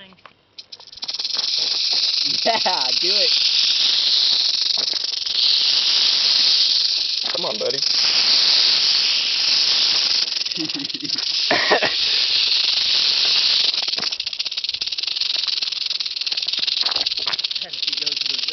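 A rattlesnake rattles with a loud, steady, buzzing hiss close by.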